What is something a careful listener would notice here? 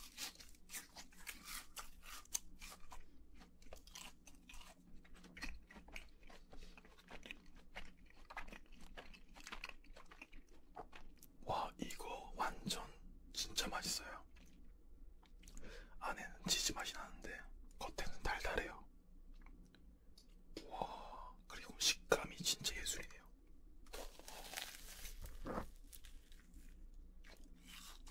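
A young man chews food with soft smacking sounds.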